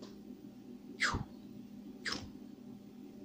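Plastic toy joints click softly as they are moved.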